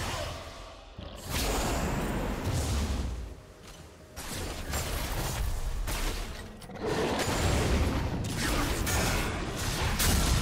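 Game spells whoosh and crackle in bursts during a fight.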